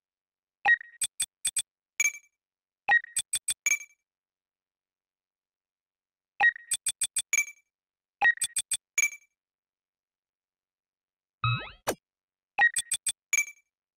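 Short electronic menu blips and clicks sound in quick bursts.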